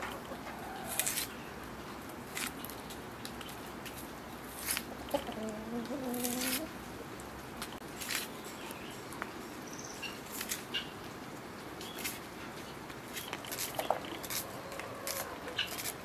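A knife slices through an onion with soft crisp cuts.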